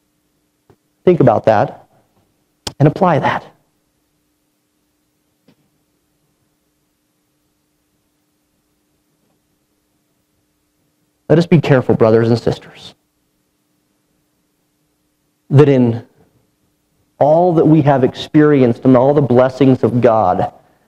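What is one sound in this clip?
A man speaks into a microphone in a calm, measured way, with long pauses.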